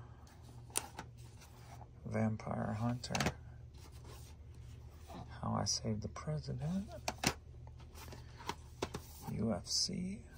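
Plastic cases clack and rattle as they are handled.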